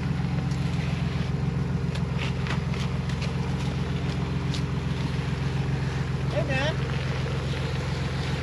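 An engine rumbles steadily at low speed as an off-road vehicle crawls over rocks.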